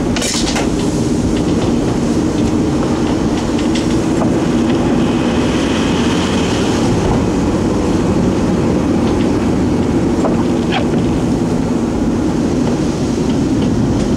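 Tyres roll on a wet road.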